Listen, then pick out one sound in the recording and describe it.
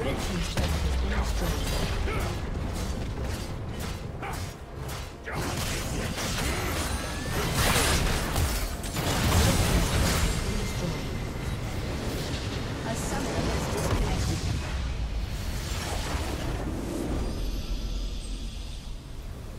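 Magic blasts and clashing effects crackle and boom in a fast fight.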